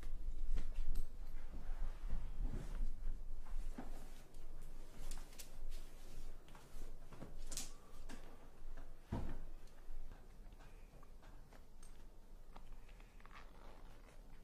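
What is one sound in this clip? Bedclothes rustle as they are handled.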